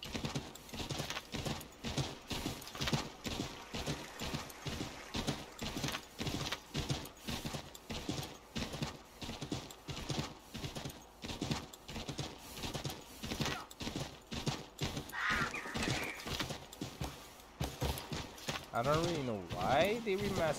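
A horse gallops with steady, rhythmic hoofbeats.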